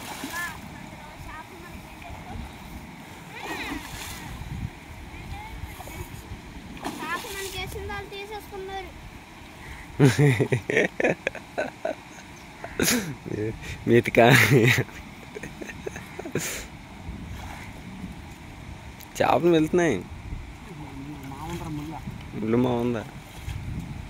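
A man splashes and sloshes through shallow water with his hands.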